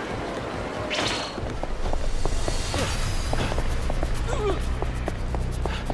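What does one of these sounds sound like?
A group of men scuffle and trade blows in a fight.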